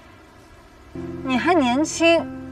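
A young woman speaks in a strained, tearful voice.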